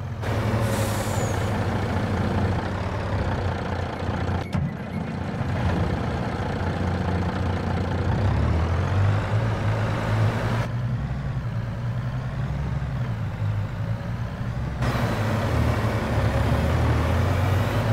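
A truck's diesel engine rumbles steadily, rising and falling as it revs.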